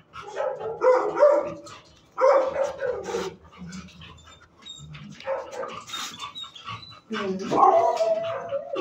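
A dog sniffs close by.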